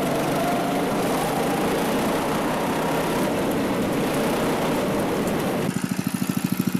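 Tyres rumble over rough tarmac.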